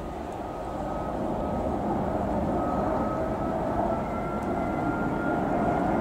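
An electric train approaches on the rails, its rumble steadily growing louder.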